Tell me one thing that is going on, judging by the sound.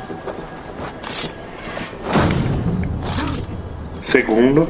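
A blade strikes a body with heavy thuds.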